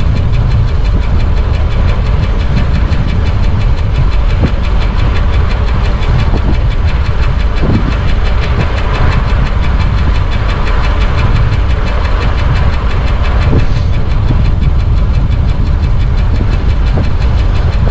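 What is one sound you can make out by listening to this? Strong wind roars against a fast-moving bicycle.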